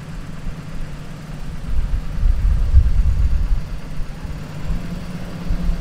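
Wind rumbles across the microphone outdoors in gusts.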